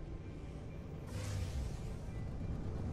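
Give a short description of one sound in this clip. A loud whoosh sweeps past as the spaceship drops out of high speed.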